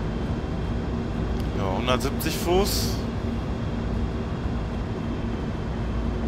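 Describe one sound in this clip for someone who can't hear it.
A train's engine rumbles steadily.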